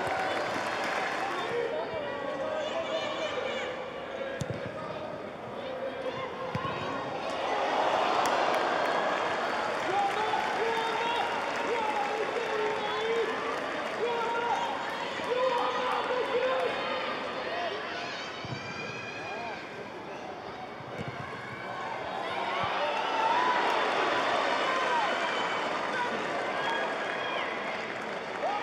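A crowd in a large open stadium cheers and murmurs.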